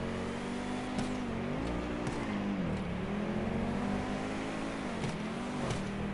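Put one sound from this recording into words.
A car exhaust pops and crackles sharply.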